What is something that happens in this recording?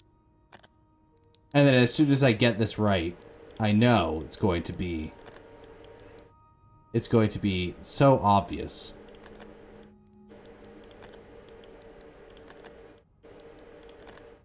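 A combination lock's dials click as they turn.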